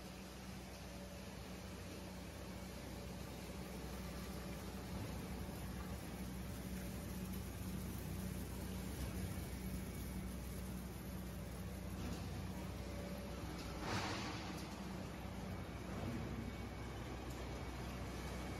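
A large machine drones and rumbles steadily.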